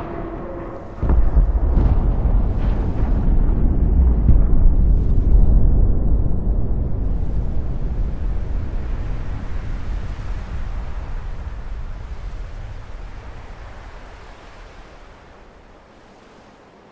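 A second blast roars out with a deep rumble.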